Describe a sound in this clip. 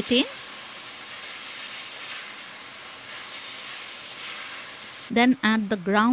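Food sizzles in a hot pot.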